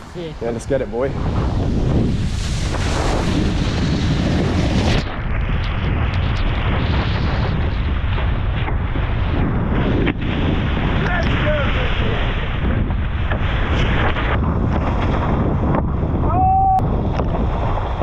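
Water sprays and rushes loudly as a board skims across it.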